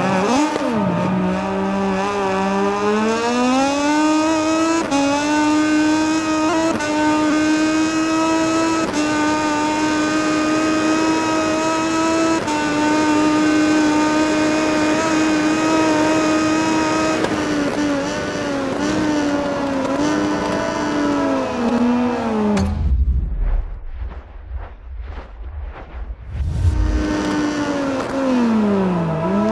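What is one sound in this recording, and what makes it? A racing motorcycle engine screams, rising through the gears and dropping as it slows.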